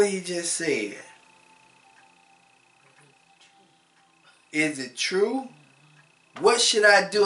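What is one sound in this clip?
A man speaks calmly and thoughtfully into a nearby microphone, with pauses.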